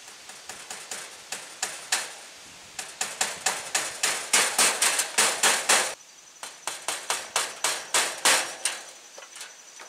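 A hand saw cuts with quick, rhythmic strokes.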